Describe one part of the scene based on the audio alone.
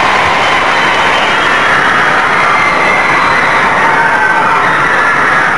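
A large crowd screams loudly and continuously.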